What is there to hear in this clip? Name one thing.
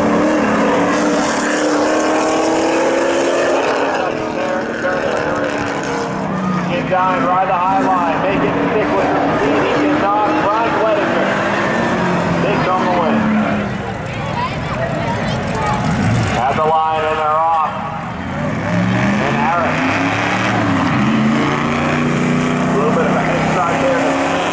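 Car engines roar and rev hard.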